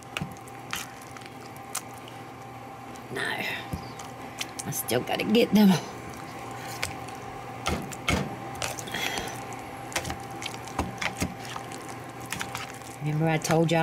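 A metal fork scrapes and clinks against a bowl while mashing soft food.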